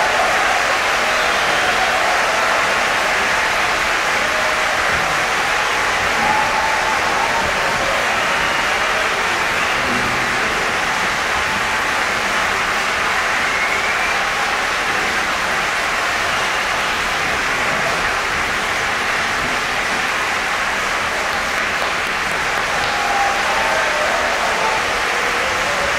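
A large mixed choir sings together in a reverberant concert hall.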